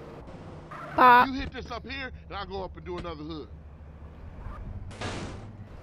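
A car door opens and shuts.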